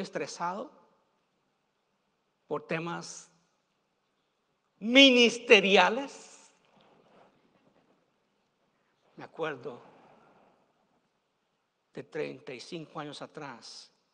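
A middle-aged man preaches with fervour through a microphone, in bursts with pauses, in a large echoing hall.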